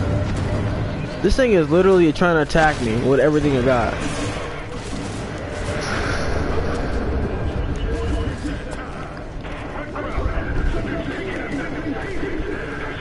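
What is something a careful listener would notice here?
Explosions rumble and boom.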